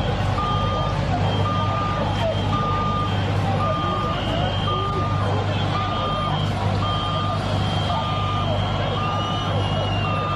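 A water cannon sprays with a rushing hiss.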